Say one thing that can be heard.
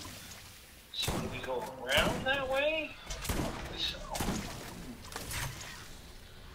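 A shotgun fires several loud blasts.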